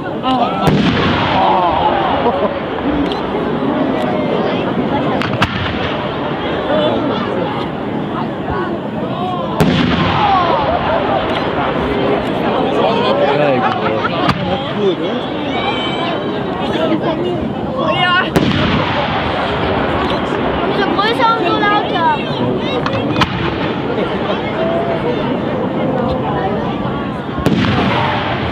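Fireworks burst with loud booms.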